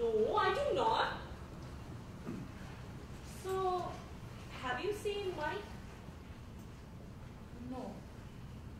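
A woman speaks through a microphone in an echoing room, in short phrases with pauses.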